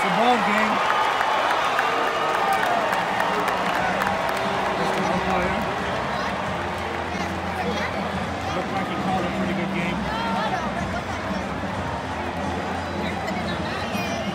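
A large stadium crowd cheers and chatters throughout.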